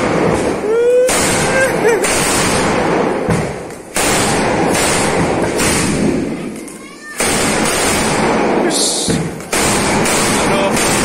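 A long string of firecrackers bursts in rapid, crackling bangs close by.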